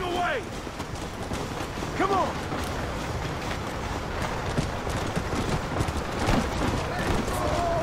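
A horse's hooves gallop steadily on dirt.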